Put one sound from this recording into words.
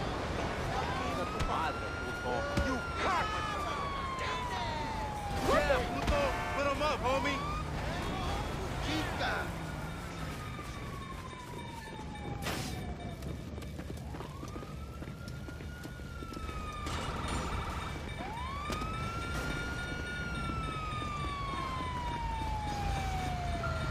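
A siren wails, rising and falling slowly.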